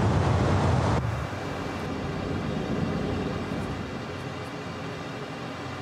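A jet engine hums, muffled, inside a cockpit.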